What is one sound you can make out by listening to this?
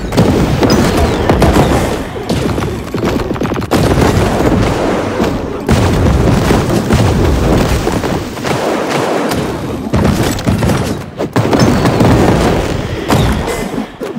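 Rapid gunfire and explosions crackle without pause.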